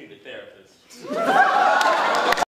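An audience laughs and cheers in a room.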